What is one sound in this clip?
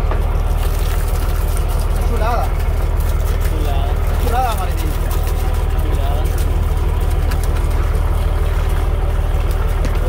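Water gushes from a hose.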